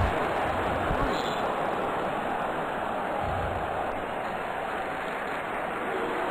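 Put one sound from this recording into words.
A large crowd cheers loudly and steadily.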